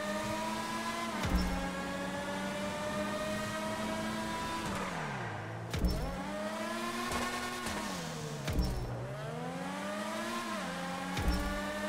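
A racing car engine revs high, dropping in pitch as it slows and rising again as it speeds up.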